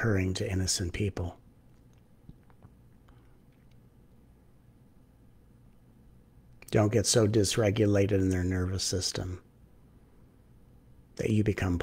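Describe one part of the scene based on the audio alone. A middle-aged man speaks calmly into a close microphone, pausing between phrases.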